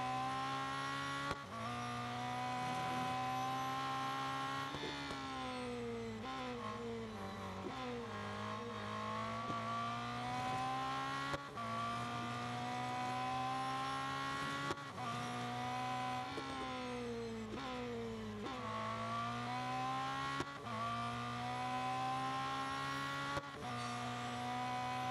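A racing car engine roars at high revs, dropping in pitch as it slows for corners and rising again as it speeds up.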